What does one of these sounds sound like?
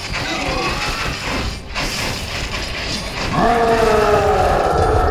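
Small explosions boom amid the fighting.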